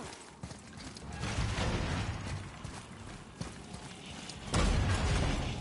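Heavy footsteps thud on a stone floor.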